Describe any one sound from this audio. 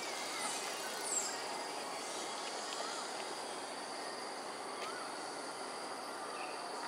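Leaves rustle softly in a breeze outdoors.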